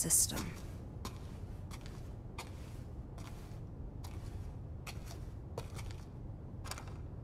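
Slow footsteps thud on a hard floor indoors.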